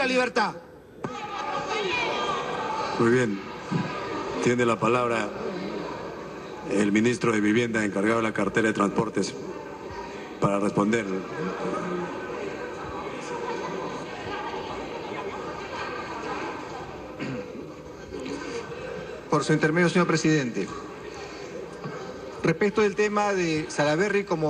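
A crowd of people murmurs and talks over each other in a large echoing hall.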